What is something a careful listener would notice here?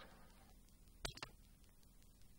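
A car door clicks open with a sharp clunk.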